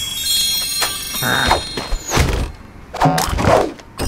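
A treasure chest bursts open with a sparkling chime.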